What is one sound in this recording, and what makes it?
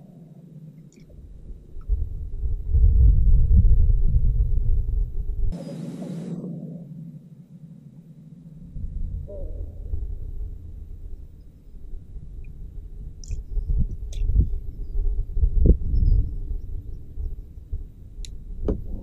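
Wind gusts across an open lake.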